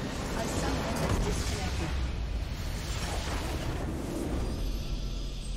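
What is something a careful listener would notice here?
A loud rumbling explosion booms and crackles.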